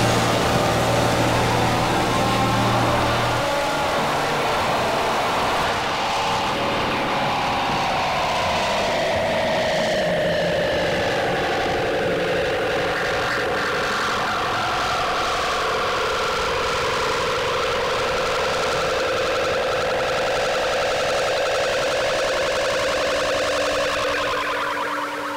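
An electronic keyboard plays sustained tones that slowly slide down in pitch.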